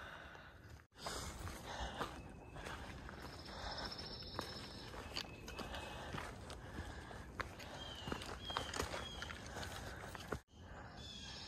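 Footsteps crunch on a leafy dirt trail.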